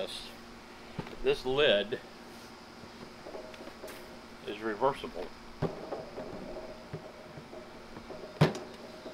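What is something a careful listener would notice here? A plastic lid clicks and thumps as it opens.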